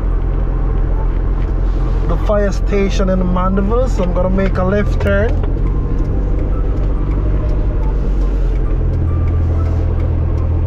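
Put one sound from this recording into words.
Car engines idle nearby with a steady low hum.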